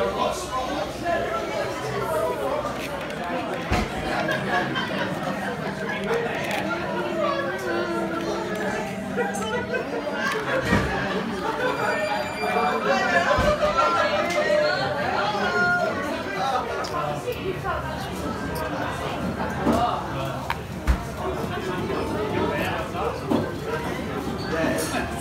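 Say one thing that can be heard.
A crowd of people chatter around, indoors.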